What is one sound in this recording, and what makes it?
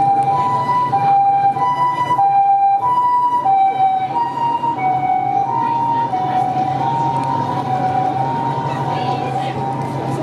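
An ambulance siren wails loudly with a two-tone call, passing close by and then slowly fading.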